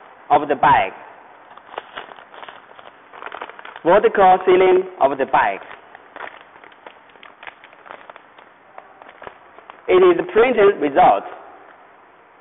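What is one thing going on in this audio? A plastic bag of grain crinkles and rustles as it is squeezed.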